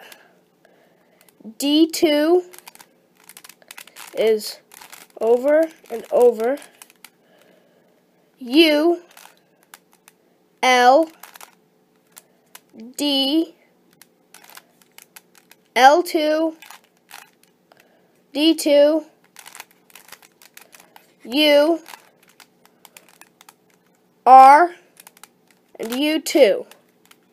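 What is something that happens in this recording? A plastic puzzle cube clicks and rattles as its layers are twisted.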